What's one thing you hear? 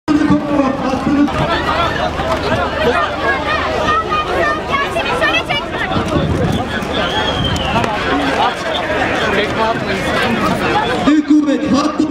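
Women scream and cry out at close range.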